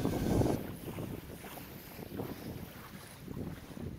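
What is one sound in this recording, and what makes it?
Small waves lap on a sandy shore.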